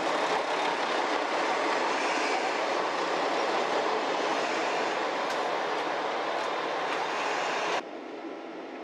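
A train rumbles loudly past close by.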